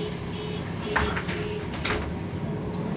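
The pneumatic doors of a city bus thump shut.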